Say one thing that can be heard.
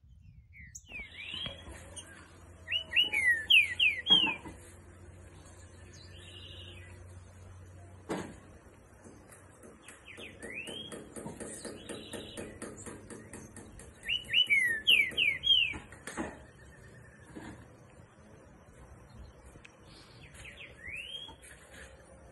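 A caged bird sings loud, clear rising whistles close by.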